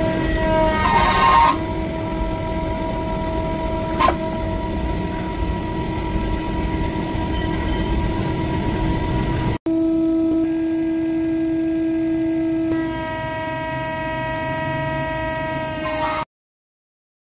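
A hydraulic press hums steadily.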